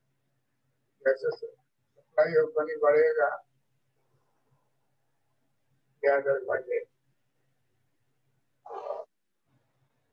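An elderly man speaks calmly in short phrases through a microphone, as if lecturing.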